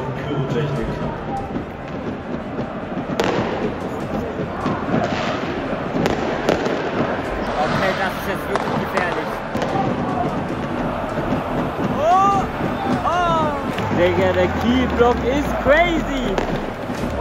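A large stadium crowd roars and chants in a huge open space.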